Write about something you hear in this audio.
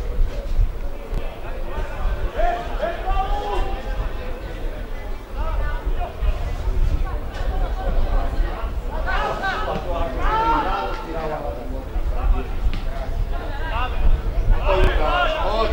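Young men shout calls to each other across an outdoor field.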